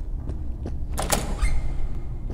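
A metal door bar clanks as a door is pushed open.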